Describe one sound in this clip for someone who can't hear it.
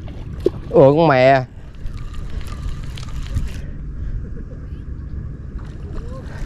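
Water laps gently at the shore.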